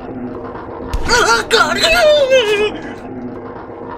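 A young man shouts loudly into a microphone.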